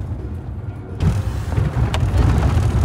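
Road and wind noise rush in through an open window.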